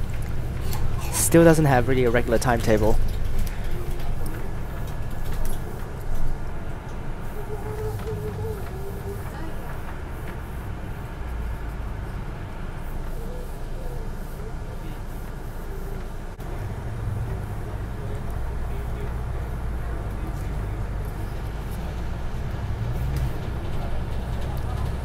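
A bus engine rumbles steadily as the bus drives along a road.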